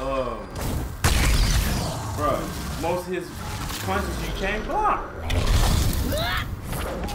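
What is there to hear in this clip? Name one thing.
Flames roar and burst.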